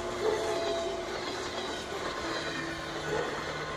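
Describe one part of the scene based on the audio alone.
A train rushes past.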